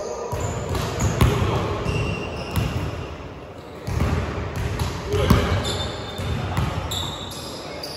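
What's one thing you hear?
Basketballs bounce on a hard floor in an echoing hall.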